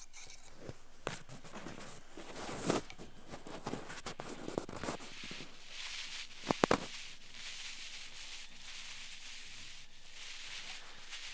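A tool scratches and crackles close inside an ear.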